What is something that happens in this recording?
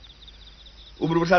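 An elderly man speaks urgently into a two-way radio.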